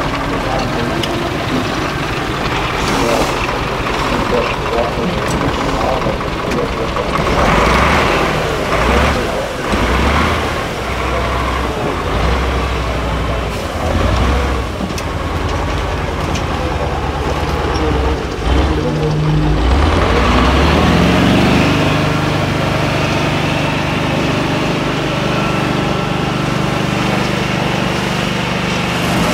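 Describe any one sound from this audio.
Big tyres crunch and grind over loose dirt and stones.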